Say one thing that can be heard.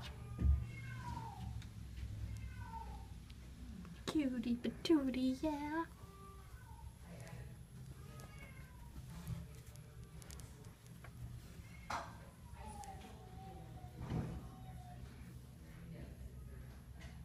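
A cat purrs with a low, steady rumble.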